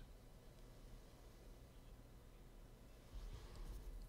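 A man sips from a glass.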